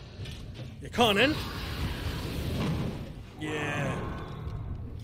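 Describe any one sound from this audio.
A flamethrower roars with a burst of fire.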